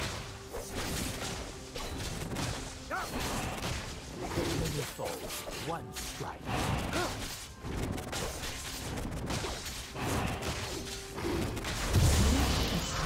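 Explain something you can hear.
A game creature roars and screeches.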